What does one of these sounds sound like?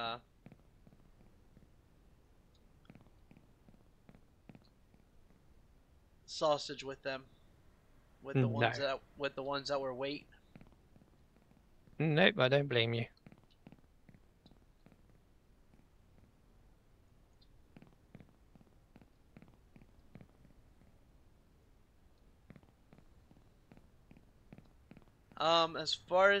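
Footsteps tap softly on hard ground.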